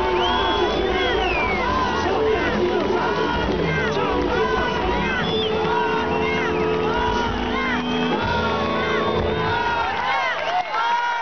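A live band plays loud music through loudspeakers outdoors.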